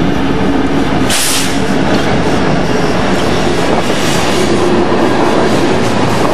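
Freight car wheels rumble and clatter on the rails.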